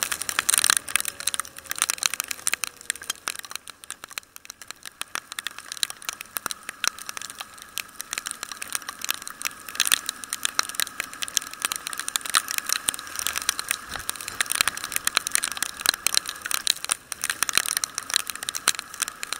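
Raindrops patter and tap sharply close by.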